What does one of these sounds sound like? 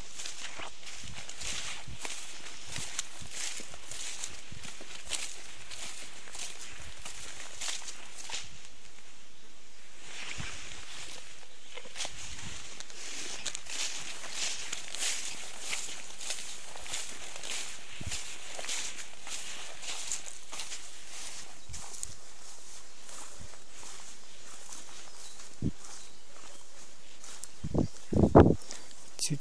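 Grass and leaves rustle and crackle underfoot as someone walks through thick vegetation.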